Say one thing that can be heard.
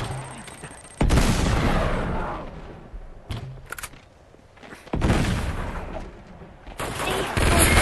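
Gunshots crack and explode in bursts.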